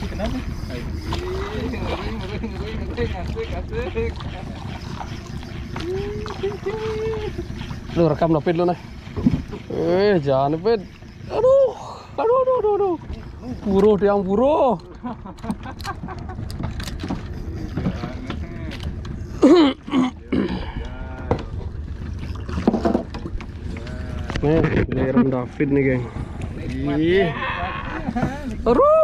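Small waves lap against a boat.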